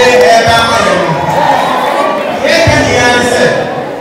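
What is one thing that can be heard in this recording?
A crowd cheers and shouts in a large room.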